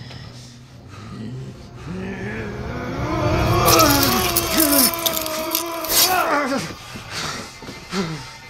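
An elderly man shouts and laughs wildly.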